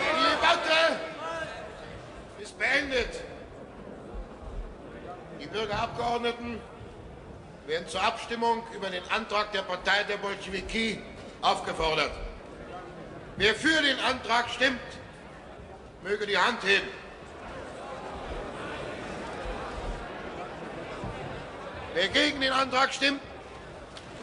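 A man speaks loudly and firmly in a large echoing hall.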